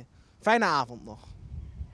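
A man speaks into a microphone outdoors.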